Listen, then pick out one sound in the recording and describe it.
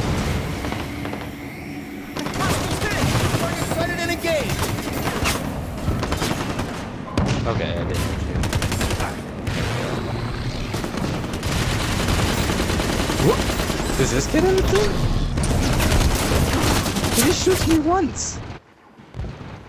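Gunshots and energy blasts crackle in rapid bursts.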